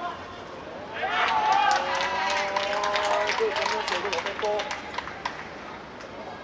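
Young boys cheer and shout excitedly outdoors.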